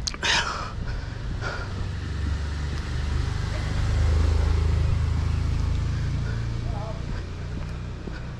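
A car engine idles close by, then fades.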